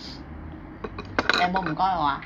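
A spoon clinks against a bowl close by.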